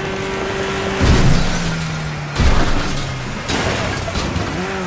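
A car crashes and tumbles with loud bangs.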